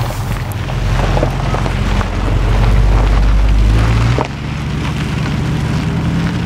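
Tyres spin and crunch on loose gravel.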